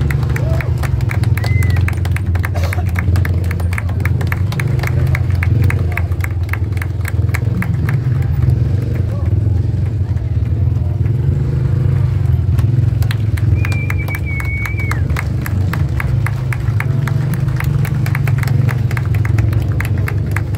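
A large outdoor crowd murmurs and cheers.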